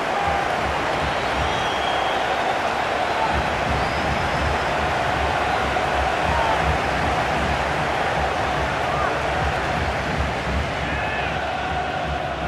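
A crowd whistles loudly.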